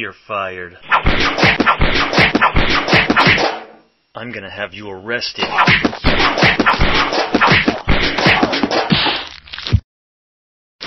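A metal bin thuds repeatedly against a man.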